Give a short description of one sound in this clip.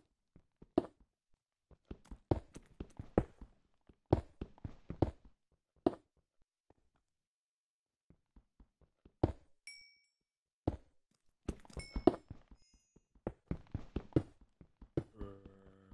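A pickaxe chips and cracks stone blocks in quick, uneven bursts.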